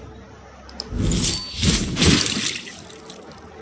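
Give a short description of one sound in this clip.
A crossbow shot fires with a sharp whoosh and impact.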